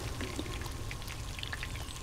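Oil sizzles in a deep fryer.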